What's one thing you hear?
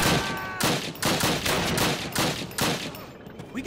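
A rifle fires several loud shots close by.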